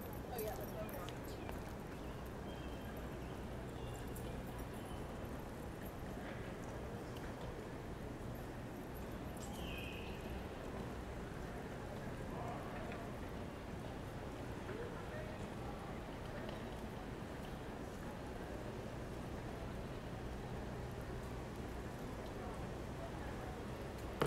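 City traffic hums steadily in the distance outdoors.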